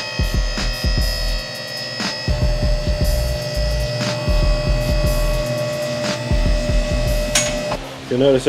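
An electric hydraulic pump motor whines steadily.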